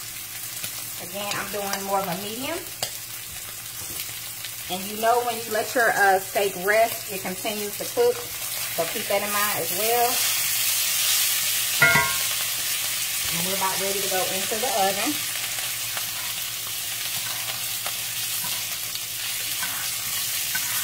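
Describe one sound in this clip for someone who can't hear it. Meat sizzles loudly in hot oil.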